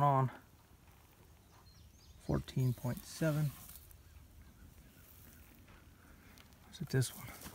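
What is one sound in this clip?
Dry hay rustles as a hand pushes through it.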